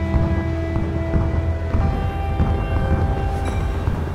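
A fiery explosion booms and crackles.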